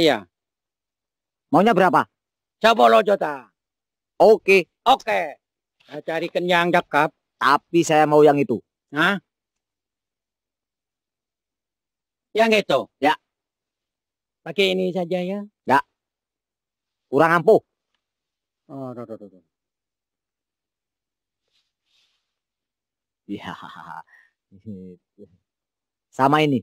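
A second man answers in a raised voice nearby.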